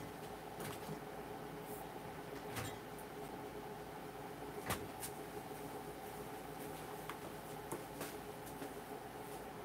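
A plastic bottle crinkles and clicks as it is handled.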